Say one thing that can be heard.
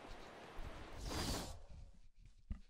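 A menu opens with a short whoosh.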